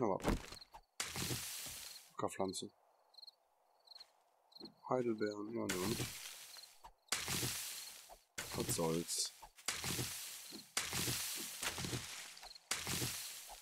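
Leafy plants rustle sharply as they are pulled up by hand.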